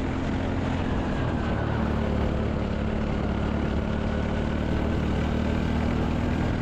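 A small kart engine buzzes loudly and steadily close by.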